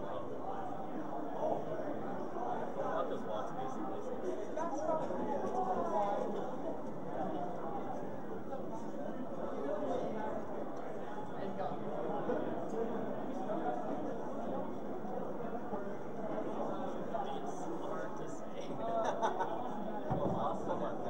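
Young men talk with animation close to a microphone.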